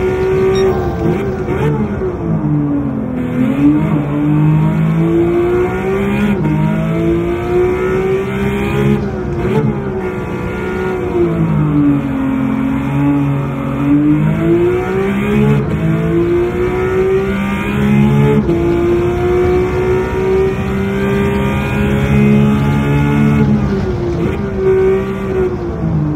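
A racing car engine roars, revving up and down as the gears shift.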